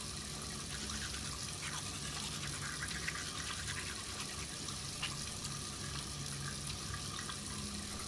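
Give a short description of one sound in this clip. A man brushes his teeth with quick scrubbing strokes.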